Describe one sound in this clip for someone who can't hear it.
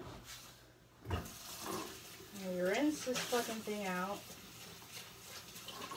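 Water splashes as dishes are rinsed.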